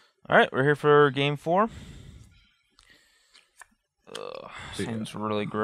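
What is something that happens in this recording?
Playing cards rustle and slap as they are shuffled.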